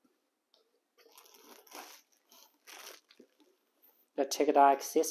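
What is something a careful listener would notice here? A plastic bag crinkles.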